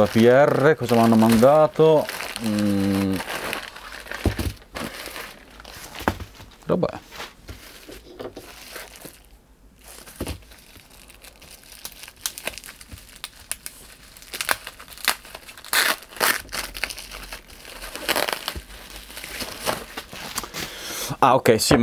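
Plastic packaging crinkles and rustles as hands open it.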